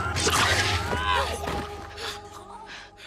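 Bodies thud and scuffle in a violent struggle.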